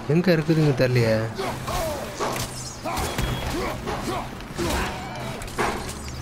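Heavy blows thud against a creature.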